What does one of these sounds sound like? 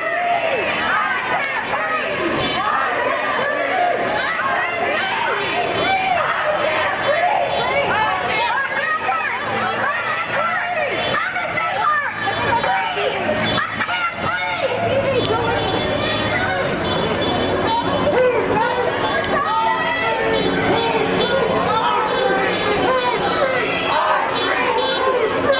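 A large crowd of protesters chants and shouts together outdoors.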